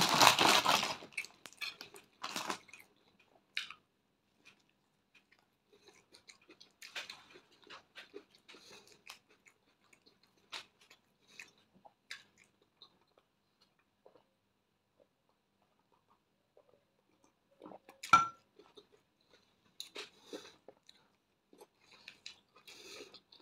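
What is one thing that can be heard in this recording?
A woman chews food with wet smacking sounds, close to a microphone.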